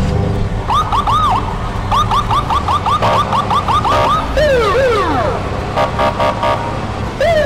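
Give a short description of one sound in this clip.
A police siren whoops and yelps in quick rising and falling bursts.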